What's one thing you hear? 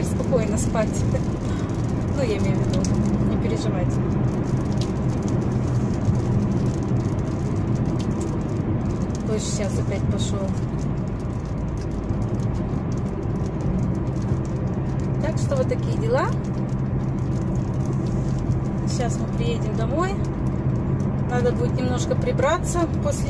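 A car's engine hums steadily as it drives.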